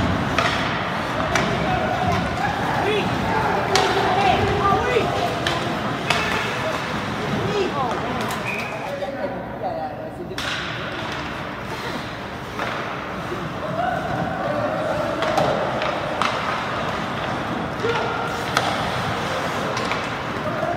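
Skates scrape and carve across ice in a large echoing rink.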